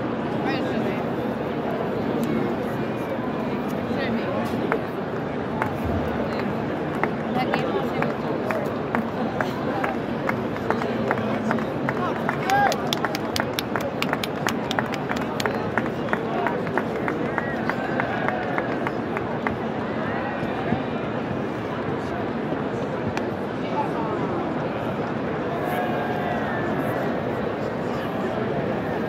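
A large stadium crowd murmurs and chatters all around.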